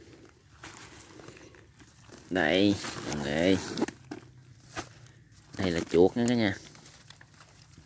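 A woven plastic basket rustles as it is handled.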